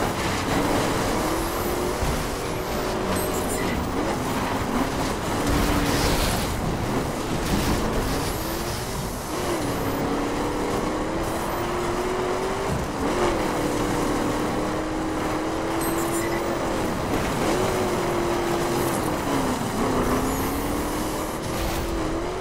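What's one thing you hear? A racing car engine roars and shifts pitch as it speeds up and slows down.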